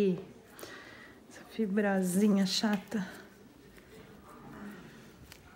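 Nail nippers snip at a toenail with small, sharp clicks.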